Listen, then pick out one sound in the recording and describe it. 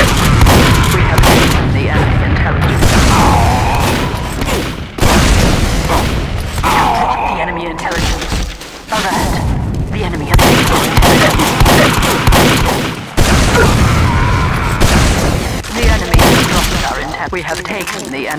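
Shotgun blasts fire off sharply.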